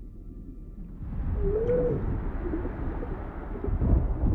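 Air bubbles gurgle and burble underwater.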